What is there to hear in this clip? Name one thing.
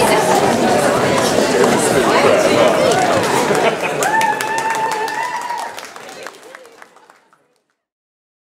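Several women walk across a stage with footsteps on the boards.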